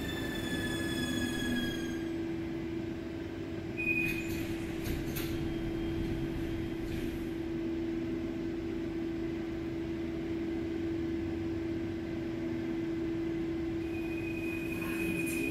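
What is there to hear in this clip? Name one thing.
A subway train hums steadily.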